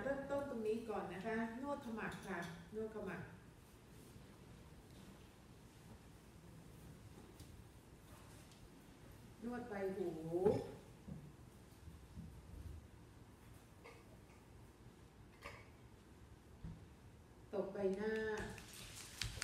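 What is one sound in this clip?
An elderly woman speaks calmly into a headset microphone.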